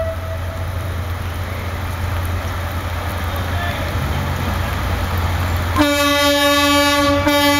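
A diesel locomotive rumbles as it rolls closer along the track.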